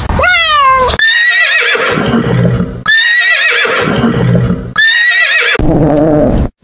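A horse whinnies loudly, several times.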